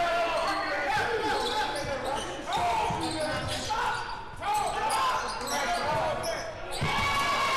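A basketball bounces on the court with dull thumps.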